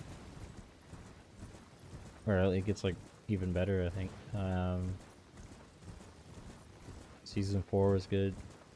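A horse gallops, hooves thudding on soft ground.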